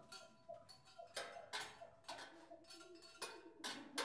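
A metal bowl rings with a sustained tone.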